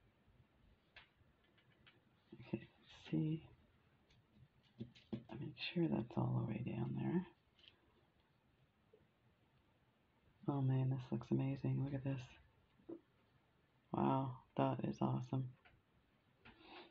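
Small beads click softly against each other.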